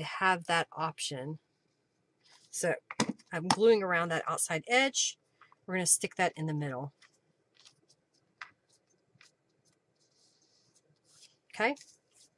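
Paper rustles and taps on a table.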